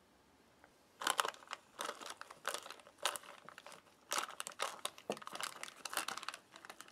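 A spoon stirs and scrapes through muesli in a crinkling paper pouch.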